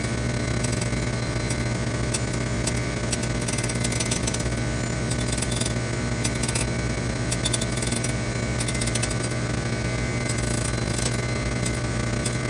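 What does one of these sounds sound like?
A grinding wheel scrapes and hisses against a metal rod.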